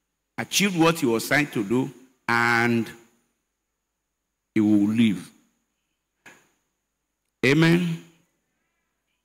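An elderly man speaks with emphasis into a microphone, in short bursts with pauses.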